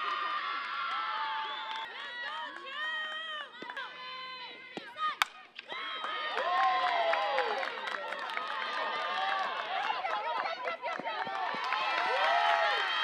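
A group of young women cheer and chant loudly nearby.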